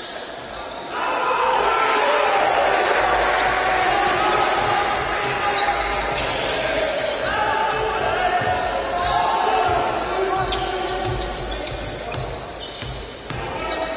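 A crowd cheers and claps in a large echoing hall.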